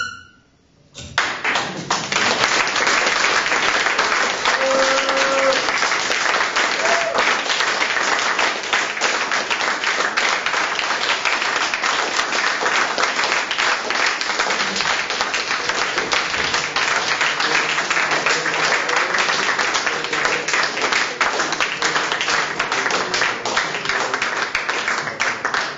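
An audience claps and applauds loudly in a hall.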